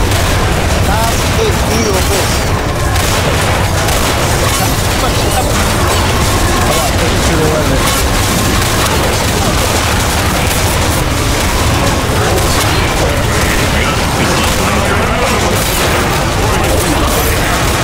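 Rapid gunfire rattles and bangs.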